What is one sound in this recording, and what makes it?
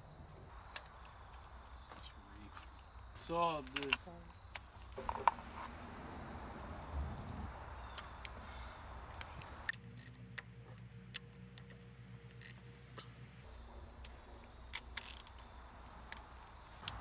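A ratchet wrench clicks rapidly while tightening bolts.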